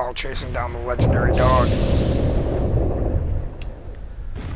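A large creature roars loudly with a deep rumble.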